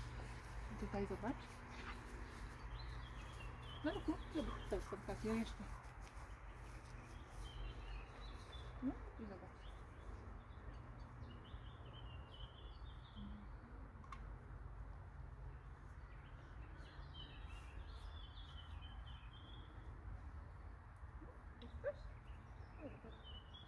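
A woman talks to a dog in short bursts, close by.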